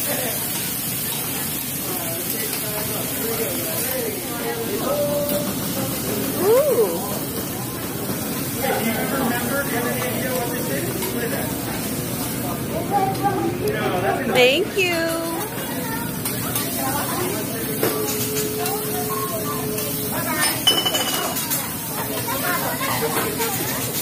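Adults talk and chatter around a table.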